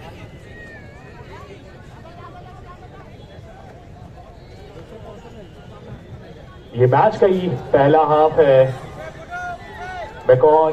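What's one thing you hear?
A crowd of spectators murmurs and chatters outdoors.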